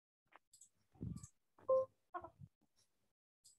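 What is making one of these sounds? A woman speaks briefly and calmly through an online call.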